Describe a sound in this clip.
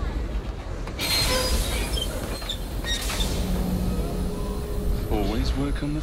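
Large steam engines hiss and rumble loudly.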